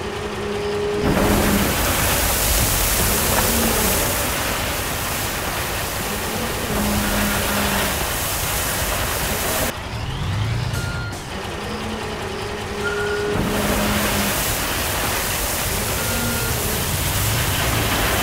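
Gravel pours and rattles out of a tipping dump bed.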